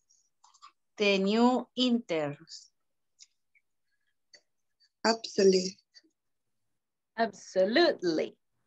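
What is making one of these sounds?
A young woman speaks clearly in short phrases through an online call, with pauses between them.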